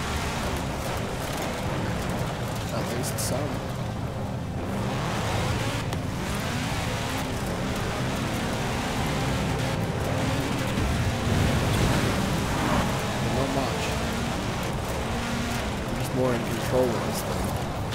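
A rally car engine roars at high speed.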